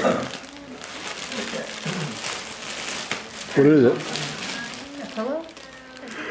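A plastic bag crinkles and rustles as it is torn open.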